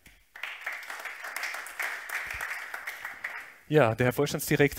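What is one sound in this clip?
An audience claps in applause.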